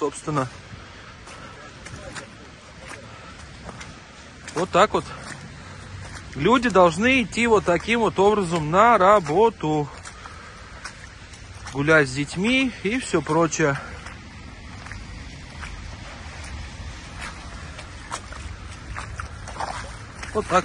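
Boots squelch through wet mud with each step.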